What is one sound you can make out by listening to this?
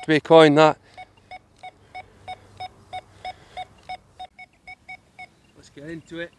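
A metal detector beeps rapidly and repeatedly.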